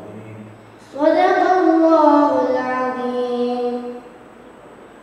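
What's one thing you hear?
A young man chants in a long, melodic voice through a microphone in a hall with echo.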